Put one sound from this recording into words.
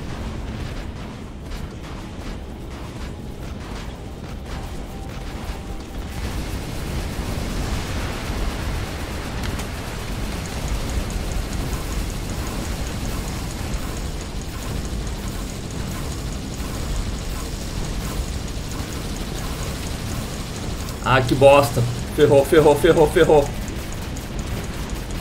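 Heavy metal footsteps thud steadily.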